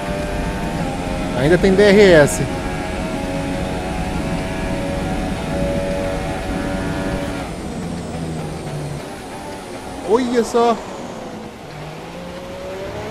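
A racing car engine whines loudly and changes pitch as it speeds up and slows down.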